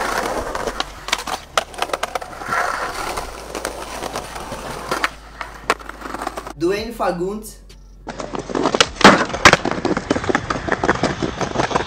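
A skateboard clacks and snaps sharply against concrete.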